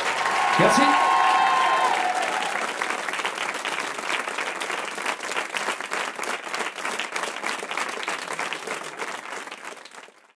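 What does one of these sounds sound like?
An audience applauds and cheers in a large room, slowly fading.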